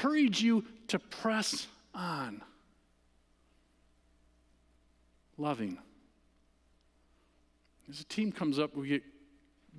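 A man speaks with animation through a microphone, with pauses.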